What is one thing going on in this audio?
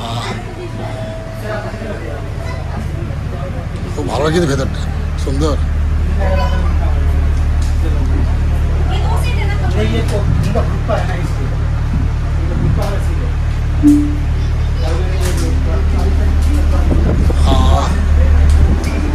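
Men and women chat nearby.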